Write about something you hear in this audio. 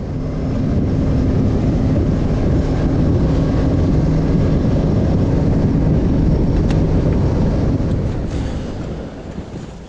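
A boat motor roars steadily at speed, then drops away.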